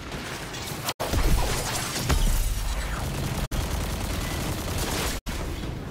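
A blast of fire roars and explodes.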